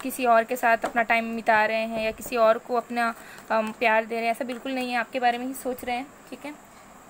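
Playing cards shuffle with soft papery flicks.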